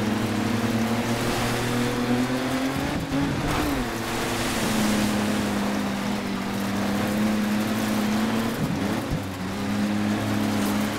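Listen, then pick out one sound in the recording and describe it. Tyres crunch and hiss over loose gravel.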